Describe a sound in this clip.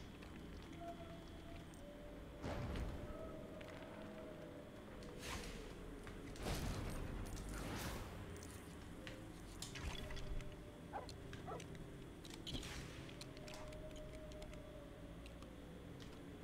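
Small sparkling chimes and pings ring out as the wand glows.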